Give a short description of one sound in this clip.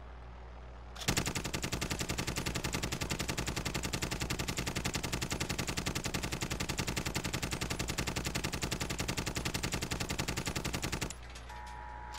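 A machine gun fires a long, rapid burst.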